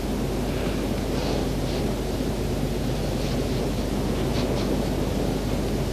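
A hand scrapes across a stone surface.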